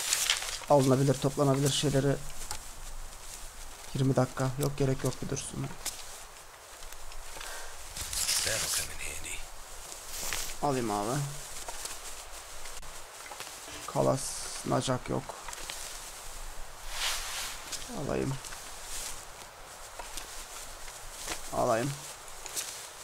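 A young man speaks into a microphone with animation, in short bursts.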